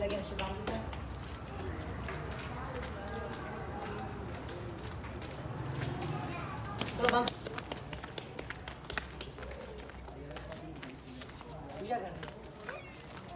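Footsteps scuff on a concrete path.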